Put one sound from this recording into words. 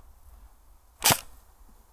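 A toy gun fires a sharp single shot.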